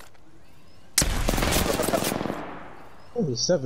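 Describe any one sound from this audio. A loud crackling energy blast bursts close by and quickly fades.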